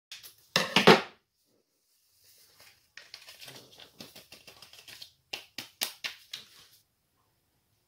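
A paper packet rustles and tears.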